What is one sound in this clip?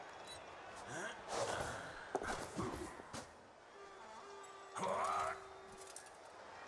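Game sound effects of players clashing thud and crunch.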